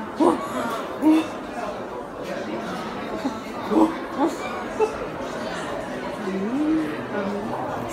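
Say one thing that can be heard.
Two young women laugh loudly together.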